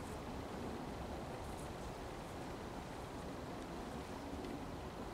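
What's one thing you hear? Footsteps crunch slowly over soft, stubbly ground.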